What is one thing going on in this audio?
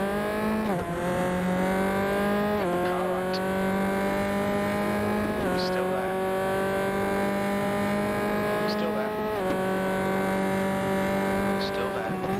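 A racing car engine roars steadily, dropping in pitch with each gear change and climbing again.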